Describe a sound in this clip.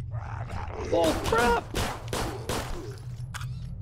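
Gunshots ring out in quick succession.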